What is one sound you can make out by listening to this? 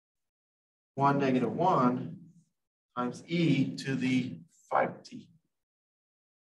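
A man speaks calmly, as if explaining, heard through a microphone.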